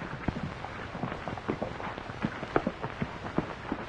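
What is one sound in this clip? Running footsteps crunch on dirt.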